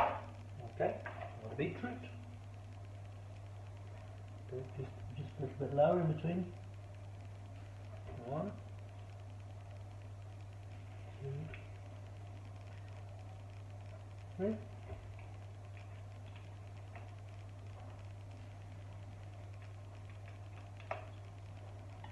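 A metal spoon scrapes and clinks against a glass bowl.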